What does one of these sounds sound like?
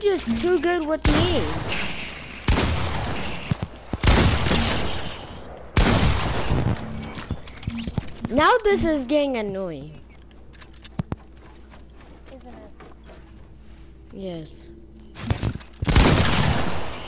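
A shotgun fires loud single blasts.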